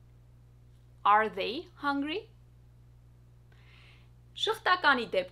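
A young woman speaks clearly and with animation close to a microphone.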